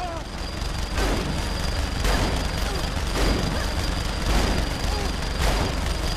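A shotgun fires in loud blasts.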